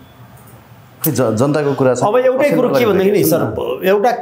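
A middle-aged man speaks calmly and clearly into a nearby microphone.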